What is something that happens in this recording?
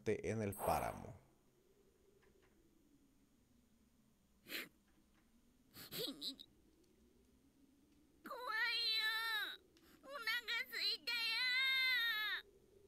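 A man speaks close into a headset microphone.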